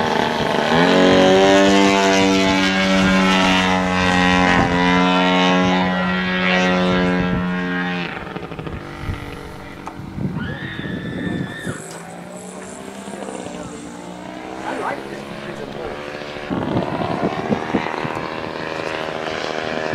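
A small propeller engine drones loudly overhead, then quietens as the plane comes down and speeds up again.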